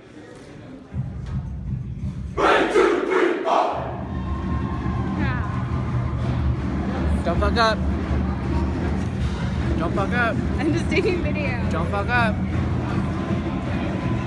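A brass marching band plays in an echoing hall.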